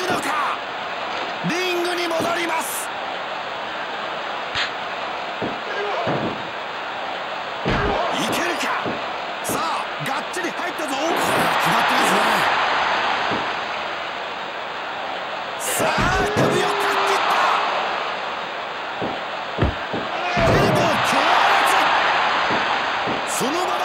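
Wrestlers grunt and shout with effort.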